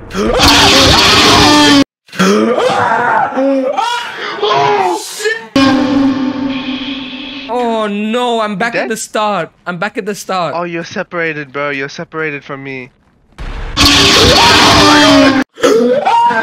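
A young man screams loudly into a microphone.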